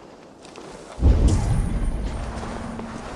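A heavy blow lands with a deep thud.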